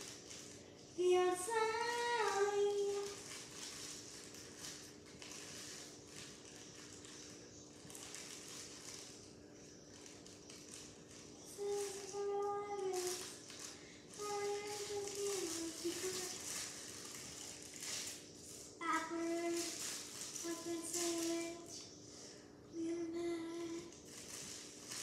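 A young girl sings in a high voice close by.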